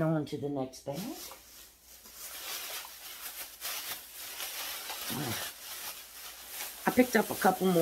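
Plastic packaging crinkles and rustles.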